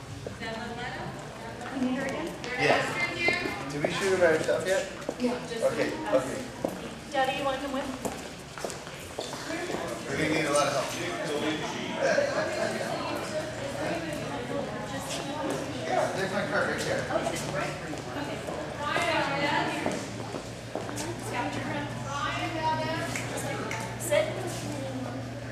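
Men and women talk in a large echoing hall.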